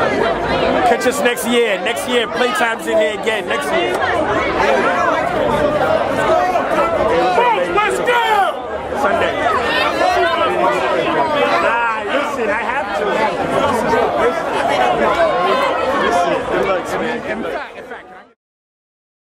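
A large crowd talks and shouts outdoors.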